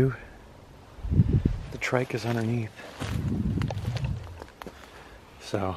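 A plastic tarp rustles and crinkles.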